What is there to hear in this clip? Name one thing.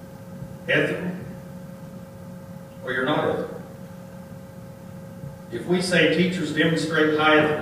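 A man speaks in a large room, in short phrases with pauses.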